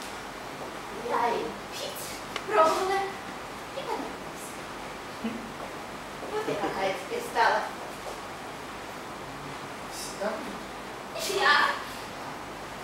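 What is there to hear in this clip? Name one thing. A woman speaks with animation in a large echoing hall.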